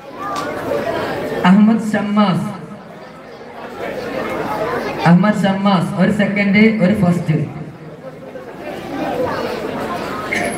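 A man chants and calls out loudly through a microphone and loudspeakers, outdoors.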